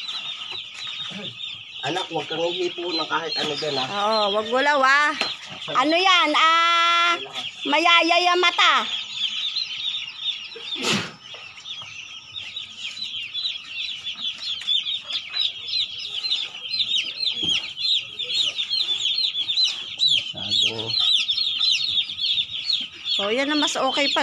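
Many baby chicks cheep loudly and constantly nearby.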